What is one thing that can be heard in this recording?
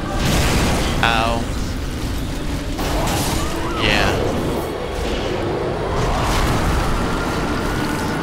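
Heavy metal weapons clash and strike.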